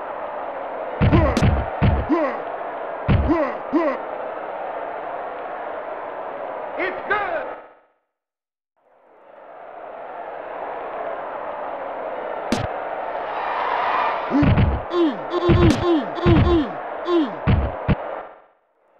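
Players' helmets and pads thump as they collide.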